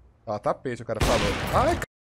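A rifle shot fires with a loud crack.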